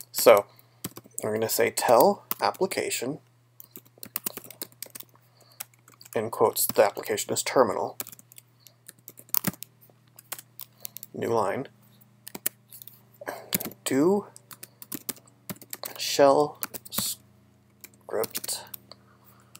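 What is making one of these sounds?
Keys click as someone types on a keyboard.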